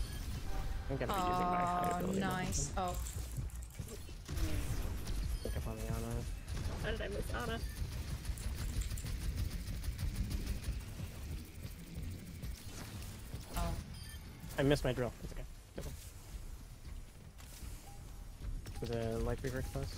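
Rapid gunfire and blasts ring out from a video game.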